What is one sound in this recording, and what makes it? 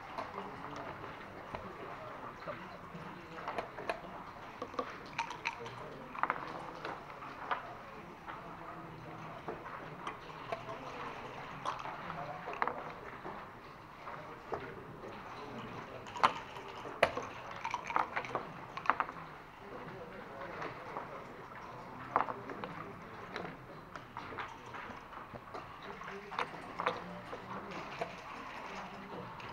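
Dice rattle and tumble onto the board.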